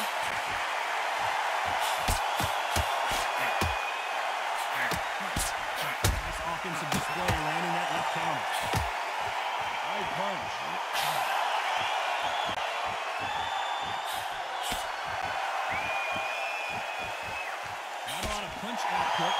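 Punches thud against a boxer's body and gloves.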